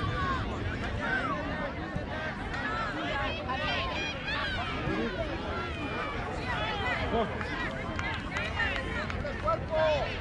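A crowd of adults and children chatters and calls out nearby outdoors.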